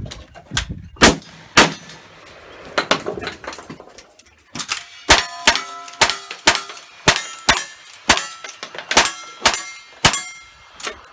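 A rifle fires loud sharp shots in quick succession outdoors.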